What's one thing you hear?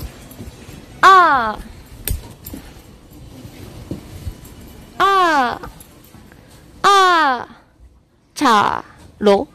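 A young woman calls out in short, high, sing-song bursts close to the microphone.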